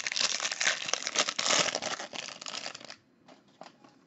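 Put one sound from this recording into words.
A foil wrapper crinkles loudly as it is torn open.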